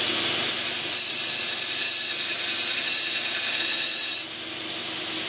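A belt sander grinds a steel blade with a harsh, high hiss.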